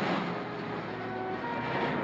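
A car engine rumbles as a car pulls away.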